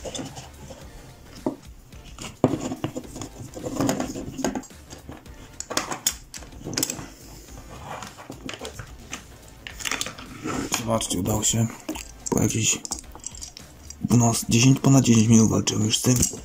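Hard plastic parts click, creak and scrape as they are pried apart by hand.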